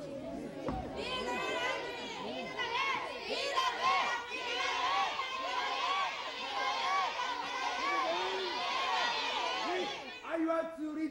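A large crowd shouts and cheers together in a steady roar.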